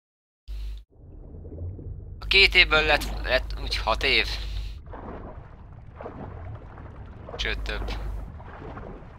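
Water rushes and bubbles.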